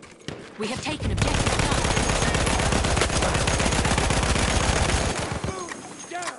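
A heavy machine gun fires a long rapid burst.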